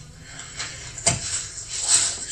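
A rock thuds down onto canvas.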